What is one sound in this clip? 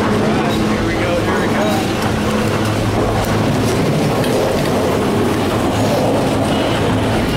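A chairlift's machinery hums and rattles steadily.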